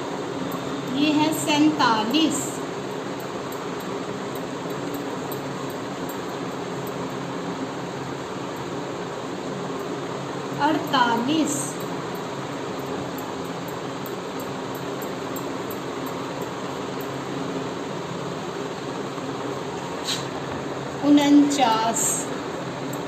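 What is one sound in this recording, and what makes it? A young woman reads out numbers calmly, close by.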